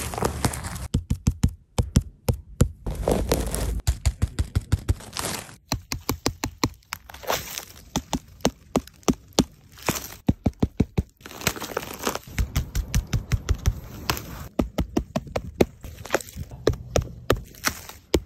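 Fingertips tap rapidly on a firm mushroom cap.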